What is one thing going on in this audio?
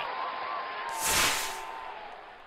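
A flame jet bursts with a loud whoosh.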